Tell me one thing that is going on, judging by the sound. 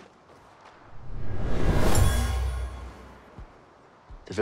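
A loud whoosh rushes past.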